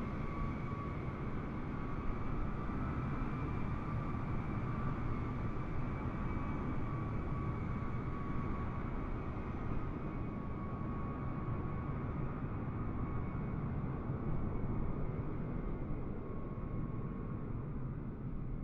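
A propeller plane's engines drone steadily.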